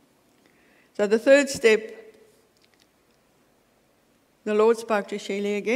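An older woman speaks calmly through a microphone in a large echoing hall.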